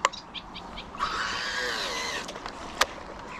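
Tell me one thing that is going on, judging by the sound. A fishing reel whirs as line pays out during a cast.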